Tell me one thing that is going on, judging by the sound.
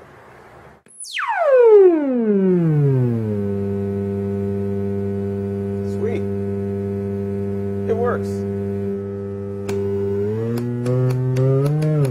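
An electronic synthesizer sweeps down in pitch from a high whine and settles into a steady buzzing drone.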